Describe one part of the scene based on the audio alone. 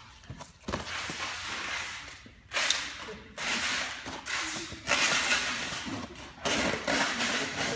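Cardboard rustles and scrapes close by.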